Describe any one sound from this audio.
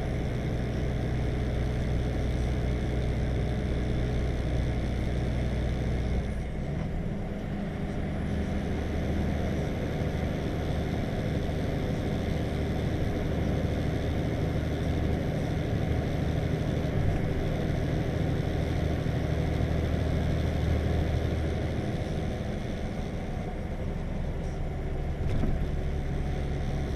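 A vehicle's engine hums steadily from inside the cab.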